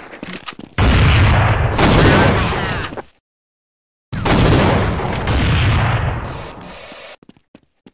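A grenade explodes with a loud, roaring bang.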